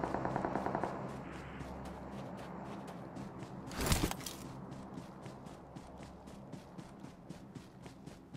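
Footsteps patter steadily from a game as a figure runs.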